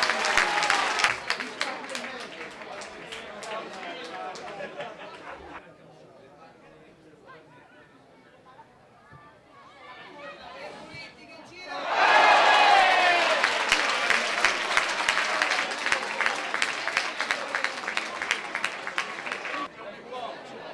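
Young women players shout and cheer outdoors in the distance.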